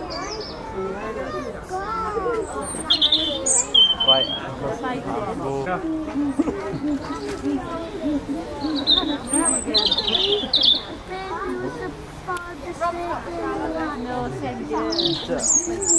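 A chimpanzee hoots and calls loudly nearby.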